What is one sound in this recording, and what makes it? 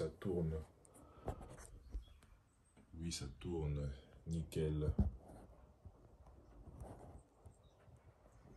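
A hand rubs and bumps against the microphone.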